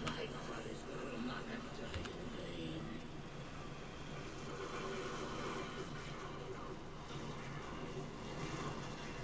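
Magic spells burst with whooshing blasts.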